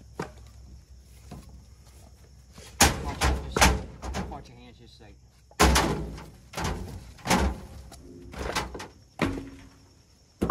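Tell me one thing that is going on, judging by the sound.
Split firewood logs thud and clatter as they are tossed onto a pile.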